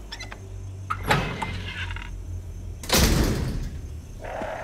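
A metal gate creaks open.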